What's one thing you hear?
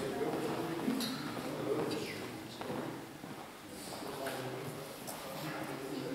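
A small plastic ball clicks as it bounces in an echoing hall.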